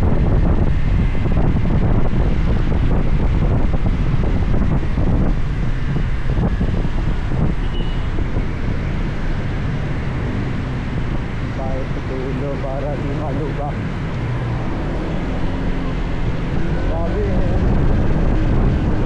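A scooter engine hums steadily, easing down as it slows.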